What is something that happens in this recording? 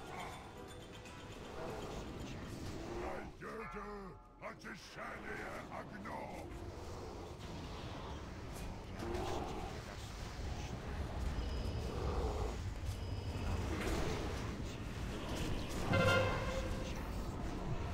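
Fiery spell blasts whoosh and crackle.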